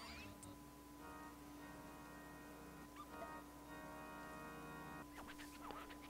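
Soft electronic music chords play.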